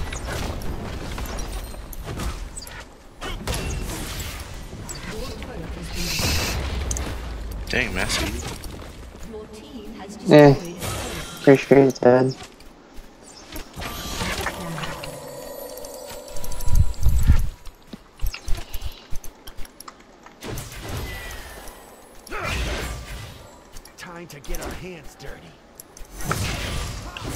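Fighting sound effects clash, zap and boom in quick bursts.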